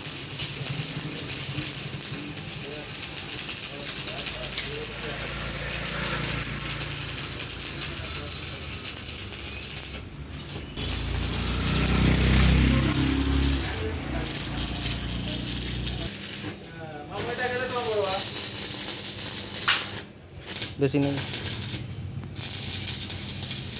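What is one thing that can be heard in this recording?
An electric welding arc crackles and hisses steadily, with short pauses.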